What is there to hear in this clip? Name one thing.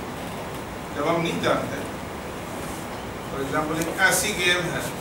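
A man speaks nearby in short bursts and with emphasis.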